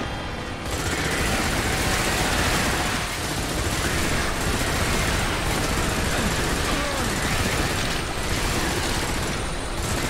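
A rapid-fire gun shoots in quick bursts.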